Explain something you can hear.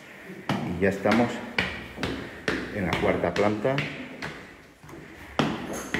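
Footsteps climb hard stairs.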